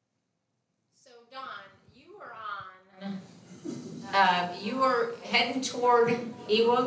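An elderly man speaks calmly through a microphone.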